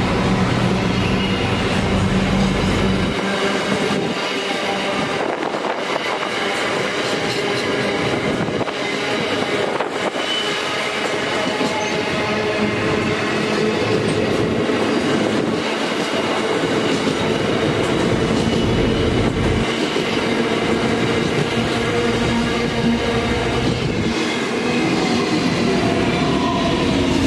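Steel wheels screech and squeal on the rails.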